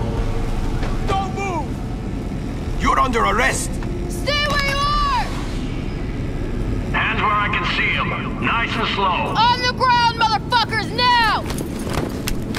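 A man shouts commands loudly nearby.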